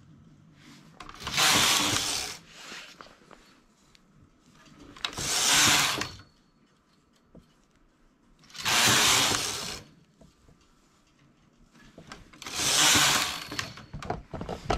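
A knitting machine carriage swooshes across the needle bed with a loud rushing clatter.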